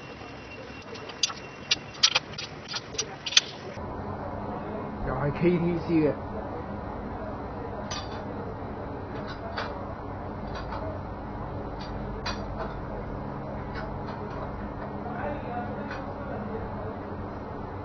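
Metal tools clank against an engine.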